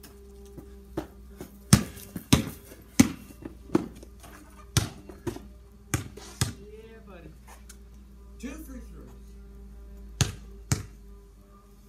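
A basketball bounces on concrete outdoors.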